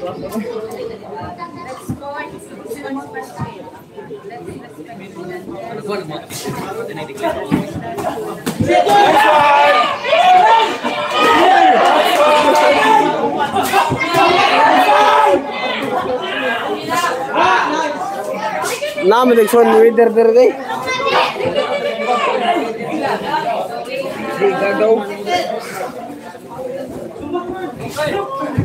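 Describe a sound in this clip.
Boxing gloves thud in quick punches.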